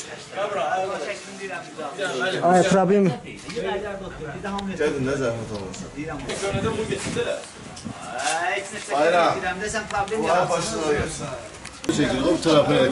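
Young men talk with agitation close by.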